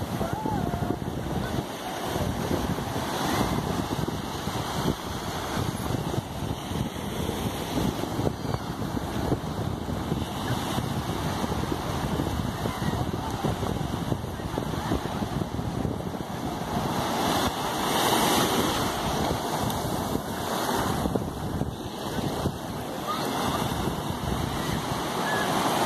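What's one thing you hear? Waves wash and break steadily on the shore close by.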